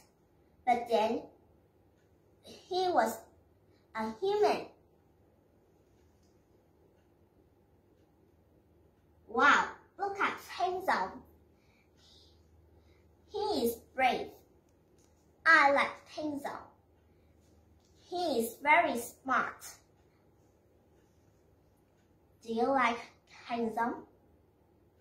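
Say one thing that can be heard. A young girl speaks clearly and slowly close by, in short phrases with pauses.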